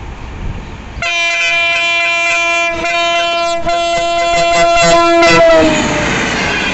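A train horn blares long and loud, then drops in pitch as it passes.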